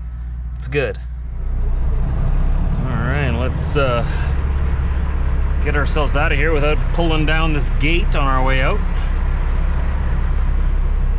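A truck's diesel engine rumbles steadily up close.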